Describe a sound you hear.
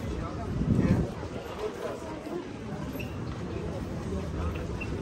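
A busy street murmurs with distant voices and footsteps outdoors.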